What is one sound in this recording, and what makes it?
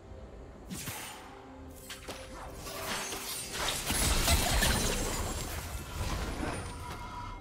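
Spell effects whoosh and burst during a fight.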